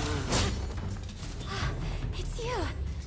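Blades swish and clash in a fight.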